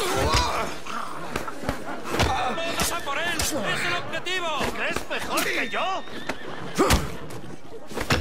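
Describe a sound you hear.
Fists land in heavy punches and thuds.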